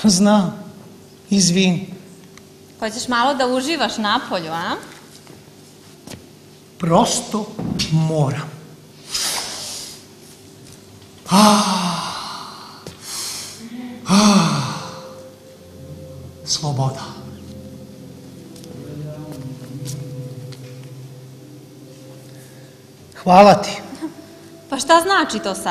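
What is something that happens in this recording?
A woman speaks with emotion, in a reverberant hall.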